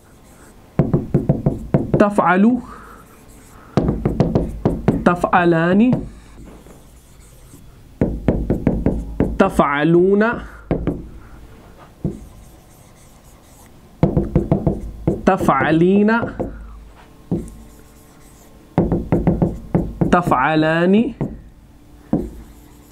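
A marker taps and scrapes on a board.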